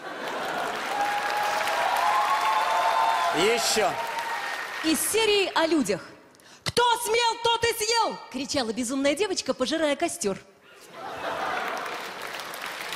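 A large audience laughs and applauds in a big hall.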